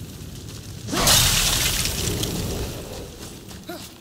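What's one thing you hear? A loud hissing burst erupts and slowly dies away.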